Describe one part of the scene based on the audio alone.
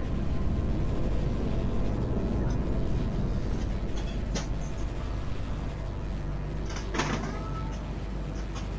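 Electricity crackles and buzzes in short bursts.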